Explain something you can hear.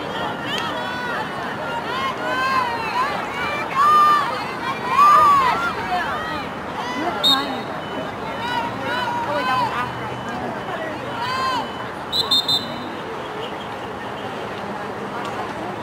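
A hockey stick cracks against a ball.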